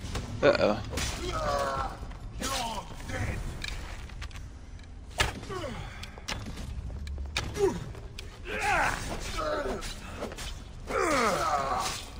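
Swords clash and strike with sharp metallic hits.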